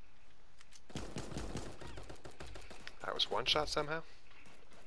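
Gunshots pop rapidly in a video game.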